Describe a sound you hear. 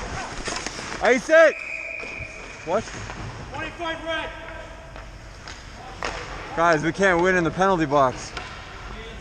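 Men shout loudly across an echoing rink.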